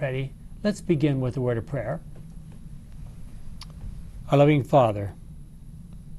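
An elderly man speaks calmly and close to a microphone, with short pauses.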